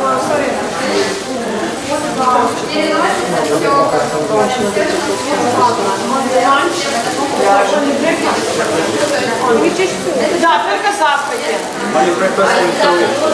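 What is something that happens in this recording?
Several women talk over one another nearby.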